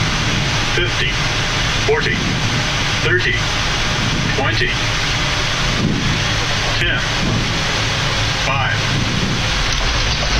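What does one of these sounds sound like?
Jet engines roar steadily at high power.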